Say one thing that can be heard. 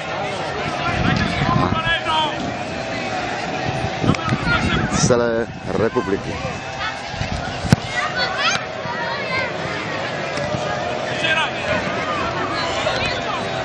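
Children shout and call out across an open field outdoors.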